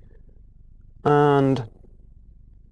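A young man hums briefly, close to the microphone.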